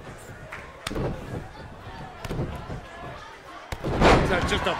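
A body thuds hard onto a wrestling mat.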